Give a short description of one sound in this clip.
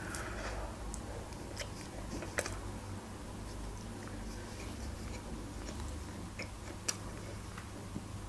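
A young woman chews food with soft wet clicks close to a microphone.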